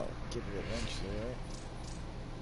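A man speaks briefly and casually into a microphone.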